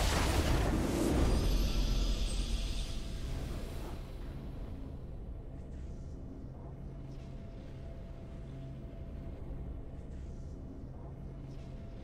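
A triumphant fanfare swells.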